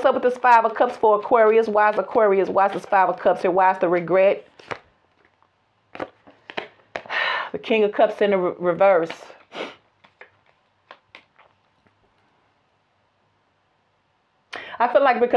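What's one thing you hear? A woman speaks calmly and close to a microphone, with pauses.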